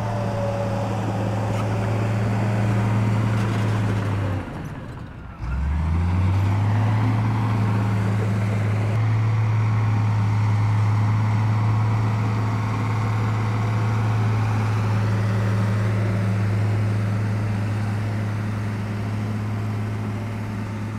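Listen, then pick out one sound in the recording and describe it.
A bulldozer engine rumbles steadily and revs up as the bulldozer pushes dirt.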